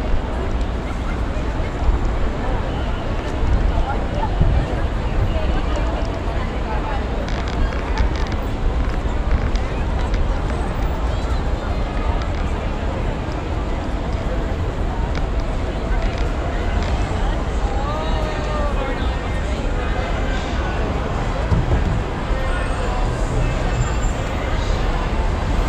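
A busy crowd murmurs and chatters all around, outdoors on a street.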